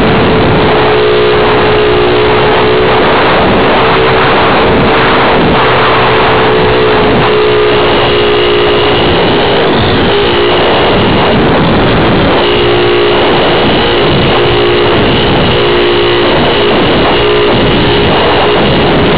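Wind rushes past the drone.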